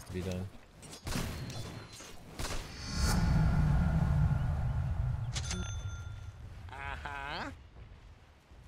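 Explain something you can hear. Game spells burst and crackle in quick blasts.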